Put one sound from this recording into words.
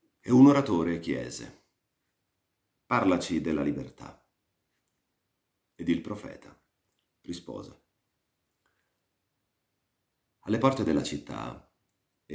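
A man reads aloud slowly in short phrases, close to a microphone, with pauses between them.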